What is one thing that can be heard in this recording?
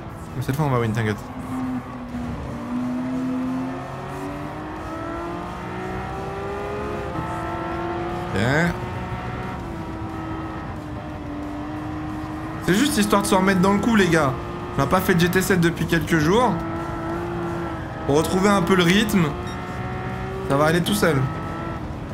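A racing car engine roars, rising in pitch and dropping with each gear change.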